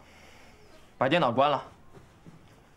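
A young man speaks with surprise.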